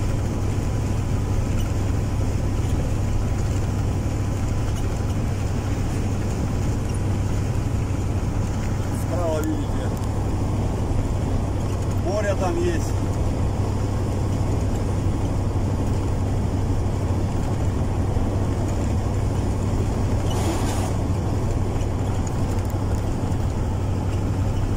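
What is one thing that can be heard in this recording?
A vehicle engine hums steadily from inside a moving cab.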